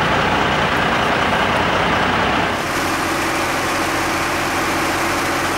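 A truck engine idles with a steady rumble.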